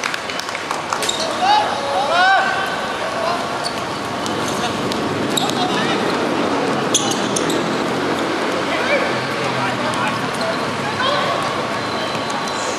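Men shout to each other across an outdoor court.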